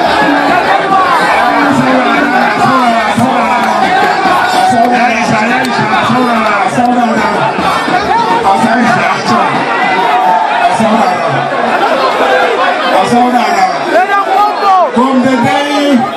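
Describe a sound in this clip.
A large crowd shouts and chants loudly, close by.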